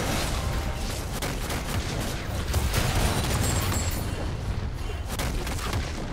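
Magic blasts and explosions burst loudly in quick succession.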